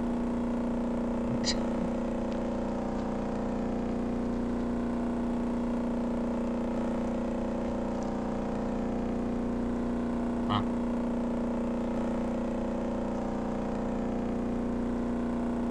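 Water splashes against a moving hull.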